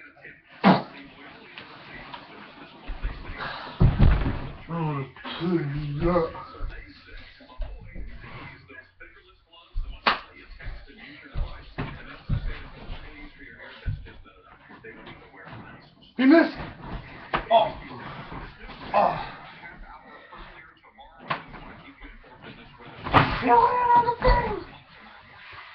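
Bodies thump onto a mattress during play wrestling.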